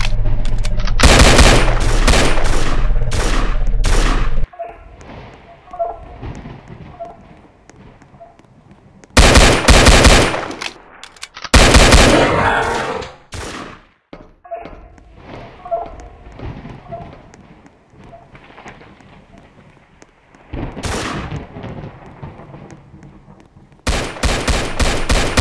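A pistol fires shot after shot in quick bursts.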